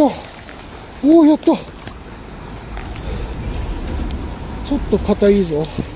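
Dry leaves and twigs rustle and crackle underfoot.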